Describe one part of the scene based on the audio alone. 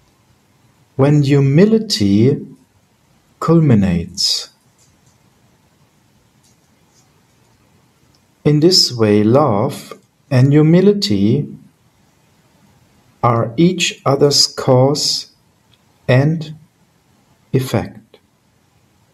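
A middle-aged man speaks calmly in short bursts over an online call.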